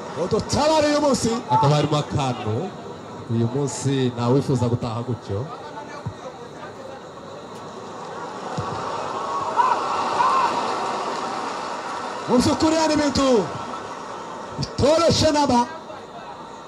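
Young men shout and call out loudly outdoors.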